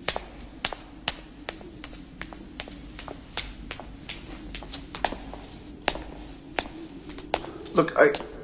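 Footsteps tap on stone stairs.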